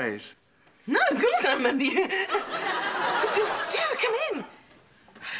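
A woman laughs heartily nearby.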